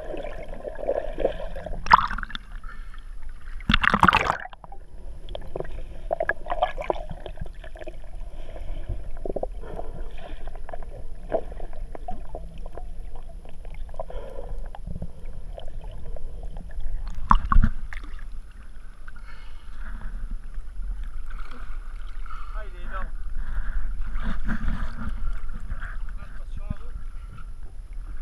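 Small waves lap against a boat hull.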